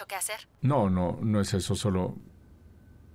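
A man talks cheerfully on the phone.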